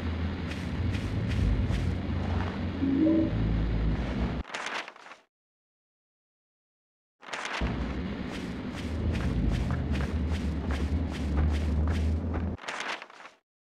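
Footsteps run quickly over dry, crunchy ground.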